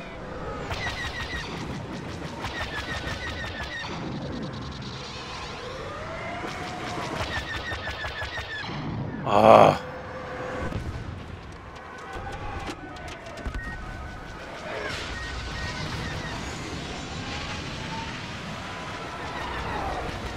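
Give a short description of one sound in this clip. Laser cannons fire in rapid bursts of blasts.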